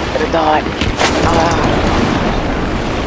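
A tank explodes with a heavy blast.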